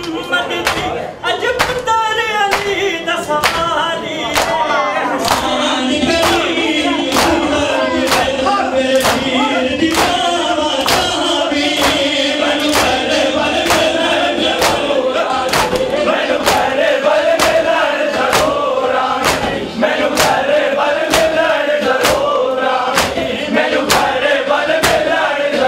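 A crowd of men chants along in unison.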